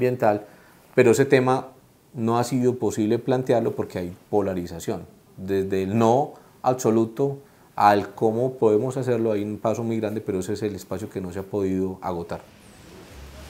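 A middle-aged man speaks calmly and earnestly into a close microphone.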